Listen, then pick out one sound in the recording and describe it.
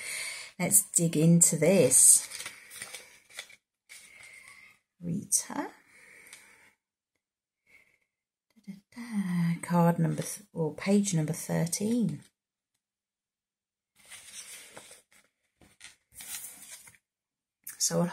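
A woman speaks calmly and close up, with pauses.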